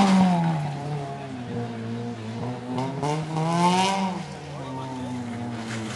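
A rally car engine revs hard through the gears as the car approaches.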